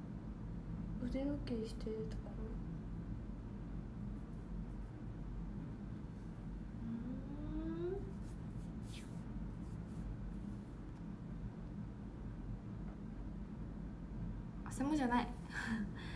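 A young woman speaks softly and briefly, close by.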